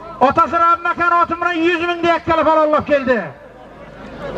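A man calls out in a loud, drawn-out voice.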